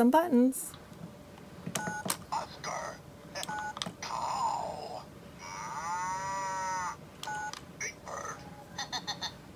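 A toy phone plays short electronic beeps and a jingle.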